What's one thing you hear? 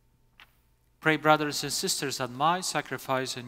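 An elderly man chants in a steady, sung voice through a microphone, echoing in a large hall.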